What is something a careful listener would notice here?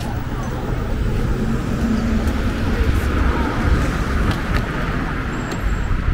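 Cars drive past on the street.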